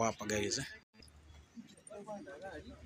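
A group of young adults talk nearby outdoors.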